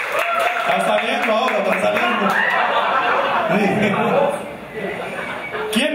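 A young man laughs into a microphone.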